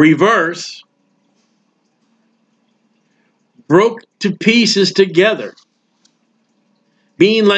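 A man speaks calmly and closely into a microphone, reading out with pauses.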